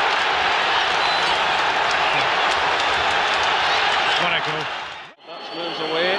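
A large crowd roars loudly in a stadium.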